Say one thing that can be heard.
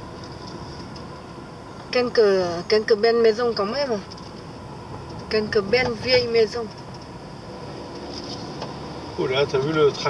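A car drives on asphalt, heard from inside.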